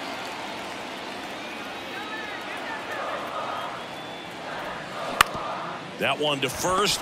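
A stadium crowd murmurs in a large open space.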